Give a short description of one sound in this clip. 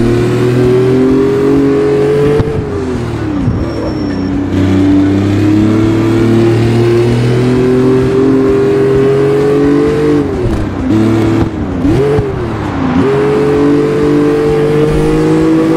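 A car's exhaust pops and crackles.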